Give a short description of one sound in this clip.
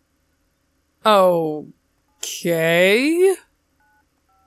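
A young woman speaks expressively into a close microphone.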